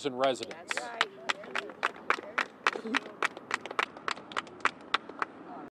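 A small crowd claps and applauds.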